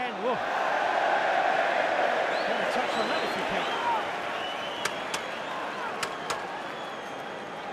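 A large stadium crowd roars loudly and then slowly dies down.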